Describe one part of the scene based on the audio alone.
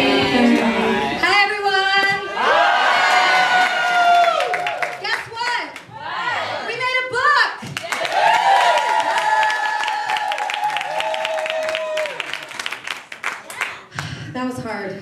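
Young women sing together into microphones, amplified in a large room.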